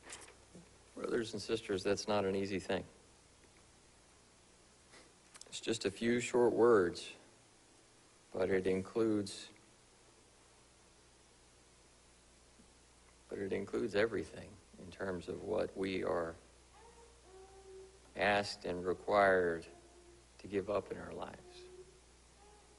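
A man speaks slowly and calmly through a microphone, with pauses, in a room with a slight echo.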